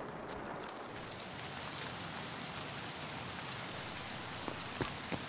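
Rain falls on wet pavement.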